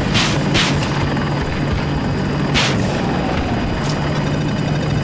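A helicopter engine drones steadily with thudding rotor blades.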